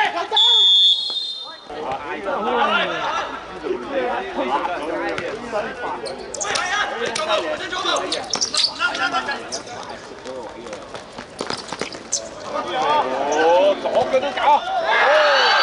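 Players call out to each other across an outdoor court.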